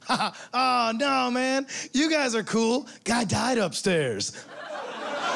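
A man sings loudly and theatrically into a microphone.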